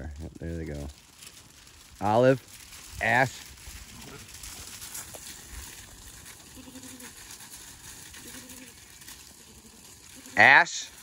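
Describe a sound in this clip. Sheep hooves patter across gravel.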